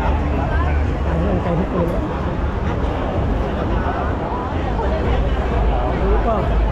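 A crowd of people chatter all around, close by.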